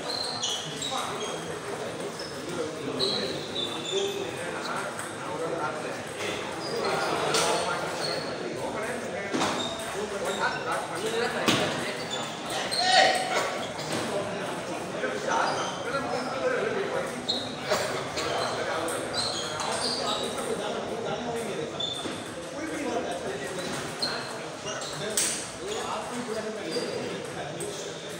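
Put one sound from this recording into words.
Table tennis balls click quickly back and forth on tables and paddles in an echoing hall.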